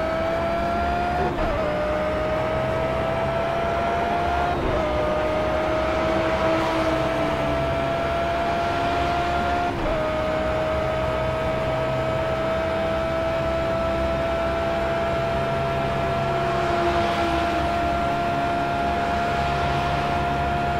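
A racing car engine roars at high revs, rising in pitch through each gear and dropping briefly at each gear change.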